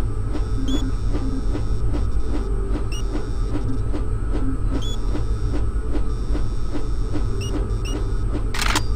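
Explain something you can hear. Short electronic blips sound as menu items are clicked.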